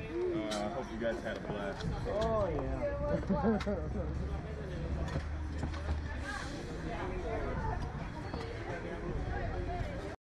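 Young people talk and shout excitedly close by.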